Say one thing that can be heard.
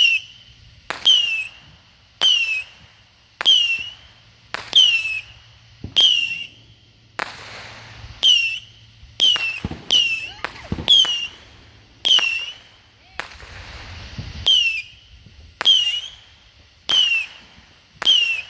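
Small fireworks crack sharply outdoors, one after another at a steady pace.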